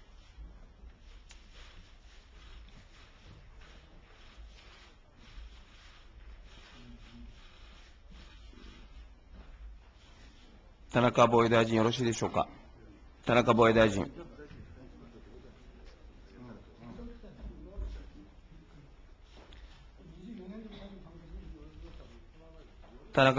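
Men murmur quietly in the background.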